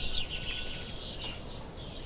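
A squirrel scratches softly in loose dirt.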